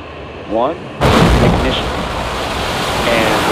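A rocket engine ignites with a deep, thundering roar.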